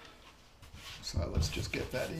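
A paintbrush brushes softly across canvas.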